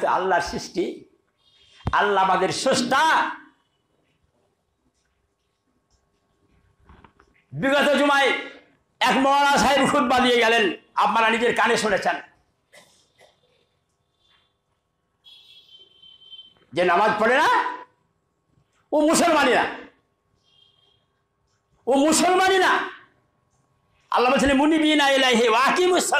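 An elderly man preaches forcefully through a microphone, in loud bursts with pauses between them.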